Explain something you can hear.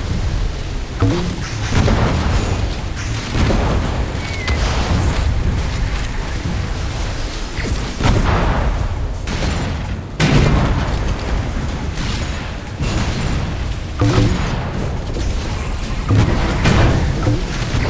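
Cannon shots and explosions boom now and then.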